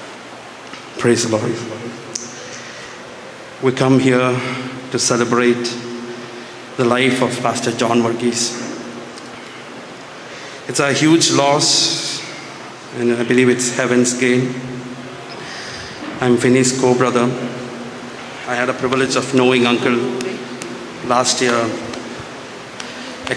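A man speaks slowly and solemnly through a microphone and loudspeakers.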